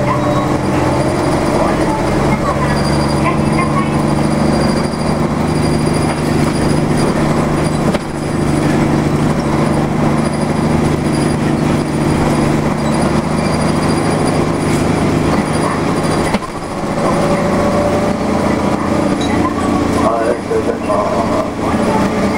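A vehicle's engine hums steadily as it drives along.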